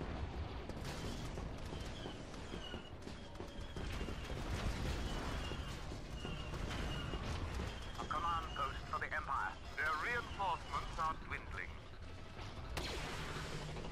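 Blaster shots crackle and fire repeatedly.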